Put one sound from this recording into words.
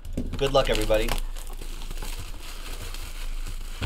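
Plastic wrap crinkles and rustles as it is torn open.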